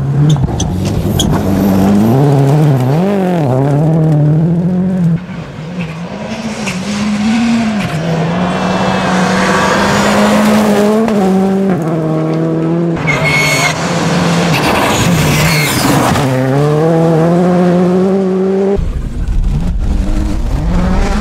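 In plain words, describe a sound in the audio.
Gravel sprays and crackles under spinning tyres.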